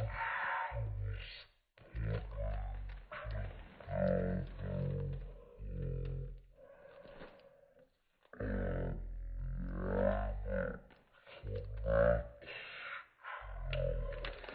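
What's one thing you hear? A plastic sheet crinkles under a hand.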